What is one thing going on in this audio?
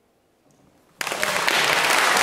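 A grand piano starts playing loudly and fully.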